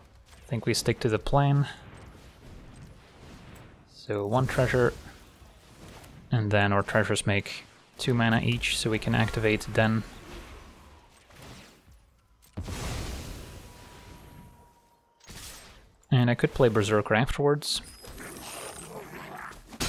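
Magical whooshes and bursts sound as cards are played.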